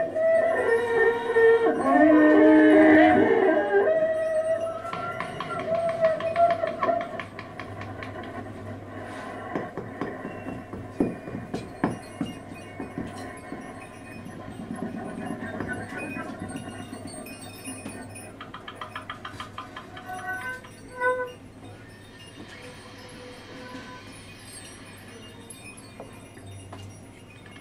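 A drummer plays loose, free rhythms on a drum kit and cymbals.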